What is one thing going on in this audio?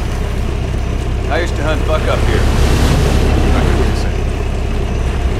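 A boat engine idles with a low, steady rumble.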